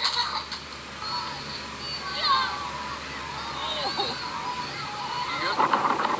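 Children shout excitedly outdoors.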